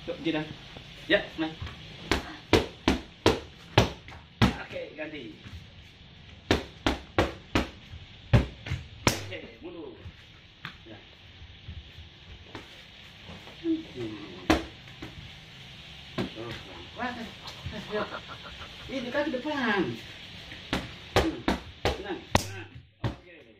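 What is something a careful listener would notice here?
Boxing gloves smack against punch mitts in quick bursts.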